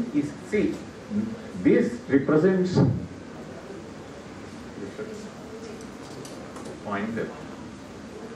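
An elderly man speaks into a microphone in a lecturing tone.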